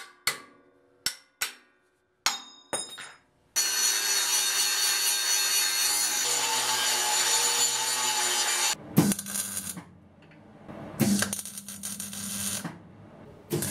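An arc welder crackles and buzzes in short bursts.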